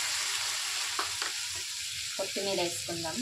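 A spatula scrapes and clinks against a metal pan.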